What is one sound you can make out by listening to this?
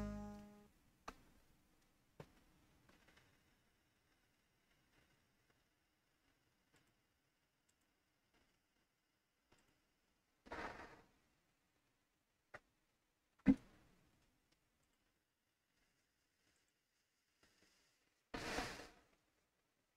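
A computer game makes short electronic clicks and whooshing bursts.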